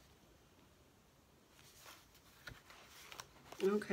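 A page of paper flips over.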